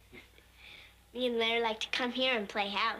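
A young girl speaks brightly.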